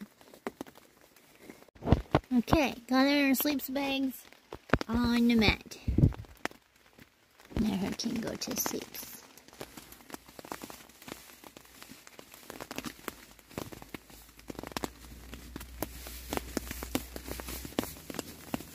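Fabric rustles softly close by as a hand strokes a goat.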